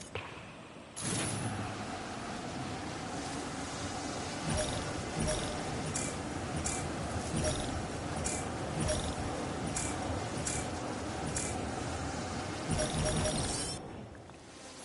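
A small drone whirs as it flies through the air.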